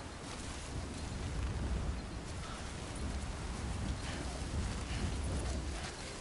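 Footsteps brush through thick grass.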